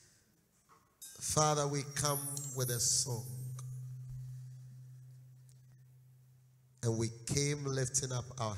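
A man preaches loudly and with fervour through a microphone and loudspeakers.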